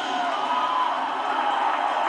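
A cymbal is struck.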